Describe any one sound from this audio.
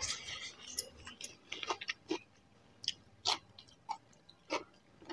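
Fingers squish and mix rice on a plate up close.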